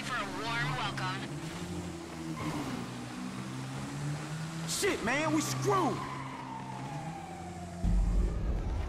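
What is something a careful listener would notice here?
A motorbike engine buzzes and revs.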